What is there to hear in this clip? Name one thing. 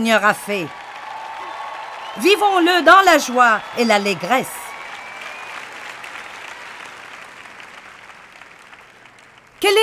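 An audience claps and applauds.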